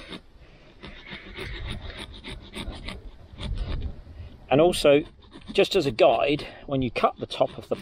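A small hand tool scrapes and scratches against a pumpkin's hard skin.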